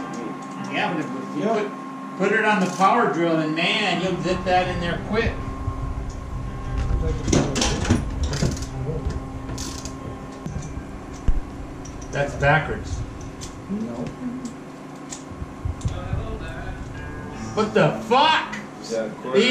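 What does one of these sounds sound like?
Men talk nearby in a small room.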